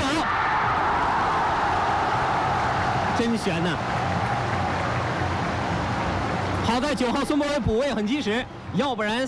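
A large stadium crowd roars loudly, then quiets somewhat.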